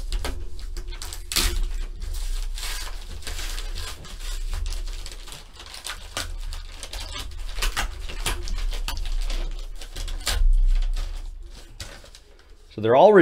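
Plastic wrap crinkles and tears as hands peel it off a box.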